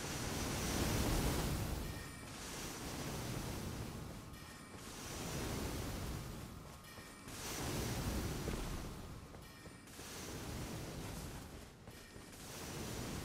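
A deep rushing roar swells and fades again and again.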